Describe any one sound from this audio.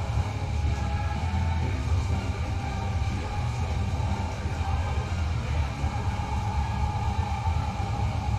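Feet stomp on a dance pad in quick rhythm.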